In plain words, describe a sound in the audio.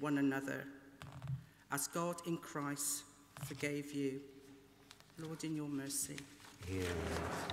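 A woman reads out calmly through a microphone in a large echoing hall.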